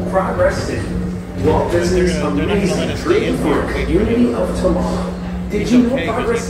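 A young man talks.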